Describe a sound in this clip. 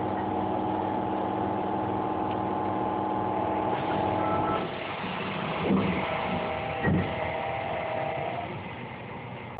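A train's electric motors whine as it slows into a station.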